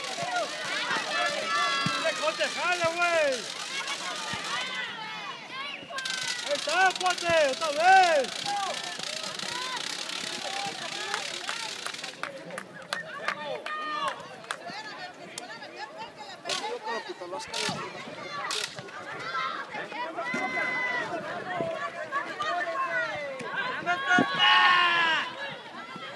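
A crowd of spectators shouts and cheers outdoors.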